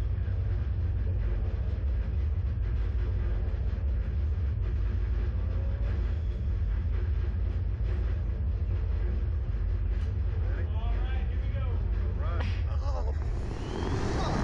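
A low engine rumble hums steadily close by.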